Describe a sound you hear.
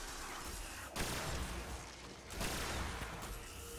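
Gunfire bursts out in short blasts.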